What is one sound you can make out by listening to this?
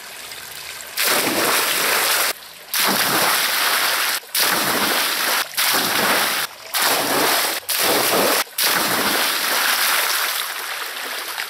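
Water splashes loudly as a man jumps into a pond.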